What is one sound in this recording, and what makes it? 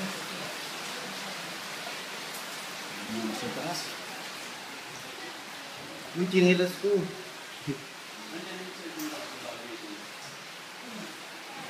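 Shallow floodwater sloshes and splashes underfoot.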